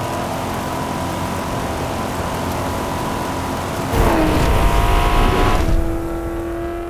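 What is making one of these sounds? A sports car engine roars steadily at speed.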